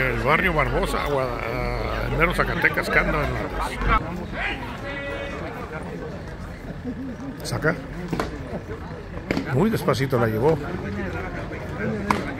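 Men talk and call out nearby outdoors.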